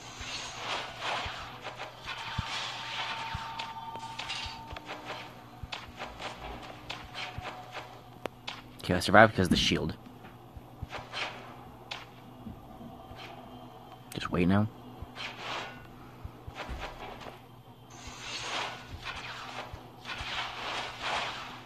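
Blades slash and clang.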